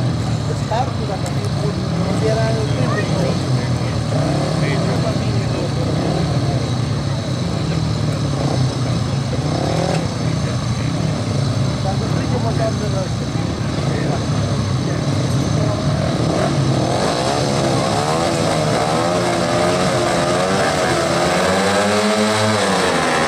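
Several motorcycle engines idle and rev loudly outdoors.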